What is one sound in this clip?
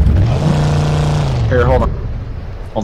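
A car engine hums steadily, then dies away.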